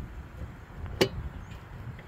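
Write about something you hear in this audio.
A metal tin lid snaps shut with a sharp clack.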